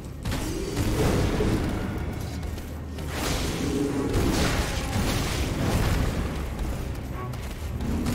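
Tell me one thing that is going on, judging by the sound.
A sword clashes and slashes in a fight.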